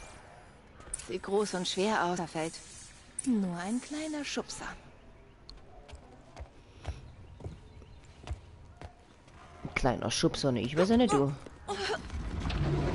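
A young woman speaks calmly and close up.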